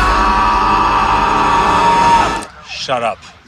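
A man screams loudly.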